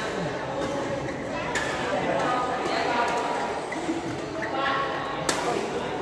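Many people chatter and call out in a large echoing hall.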